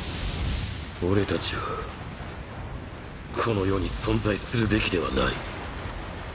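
A young man speaks in a low, tense voice.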